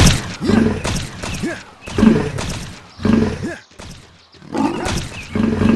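A pig squeals repeatedly.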